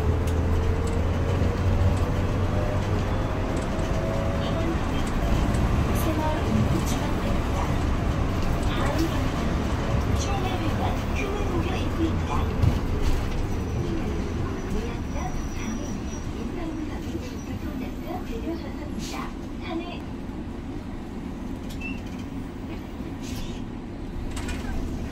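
The bus body rattles and creaks over the road.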